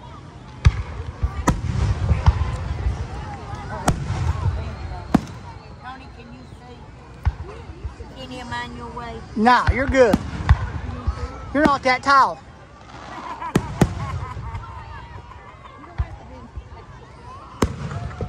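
Fireworks bang and crackle outdoors, echoing in the distance.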